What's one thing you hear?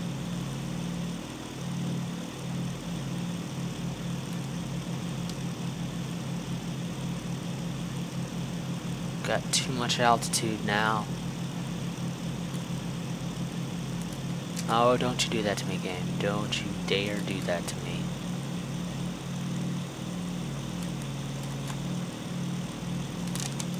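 Aircraft engines drone steadily with a low throb.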